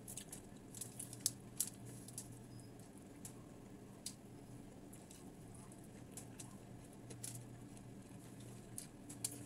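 Food clicks and crackles as fingers pick at it.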